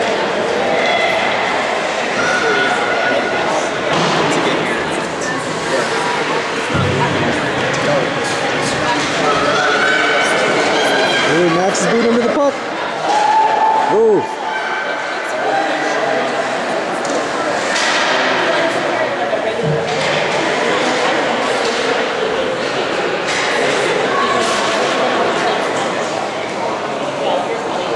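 Skates scrape across the ice in a large echoing rink.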